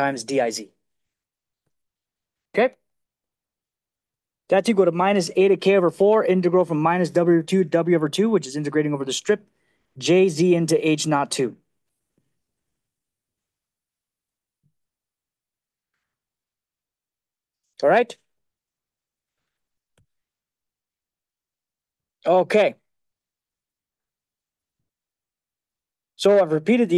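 A man lectures calmly into a microphone, pausing often.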